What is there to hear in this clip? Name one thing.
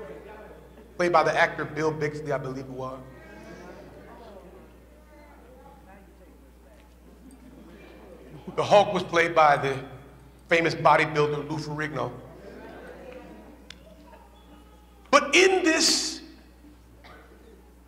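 A man preaches with animation through a microphone in a large echoing hall, in loud bursts with pauses.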